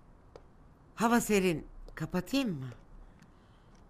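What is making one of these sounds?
A middle-aged woman speaks nearby with emotion.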